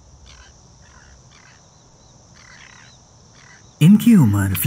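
Birds call faintly in the distance.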